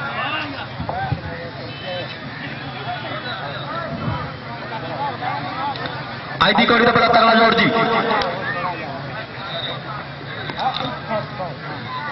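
A crowd of men chatters outdoors in the distance.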